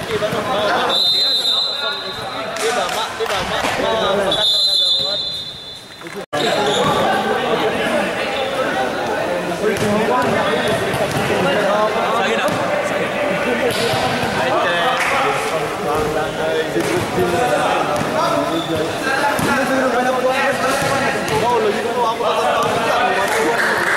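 Young men chatter and call out across an echoing hall.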